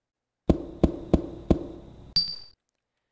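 Short menu chimes ring out in quick succession.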